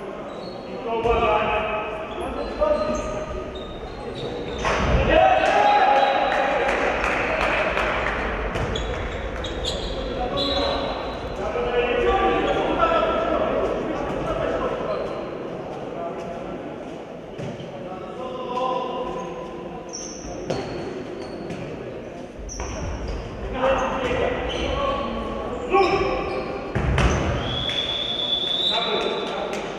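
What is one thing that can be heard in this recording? A ball bounces on a hard floor in a large echoing hall.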